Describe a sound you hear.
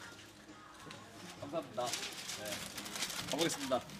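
A plastic bag rustles.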